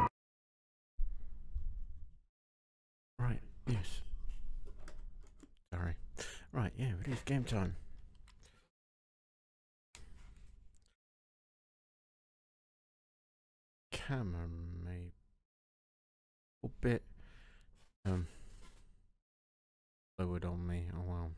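A man talks calmly into a close microphone, with pauses.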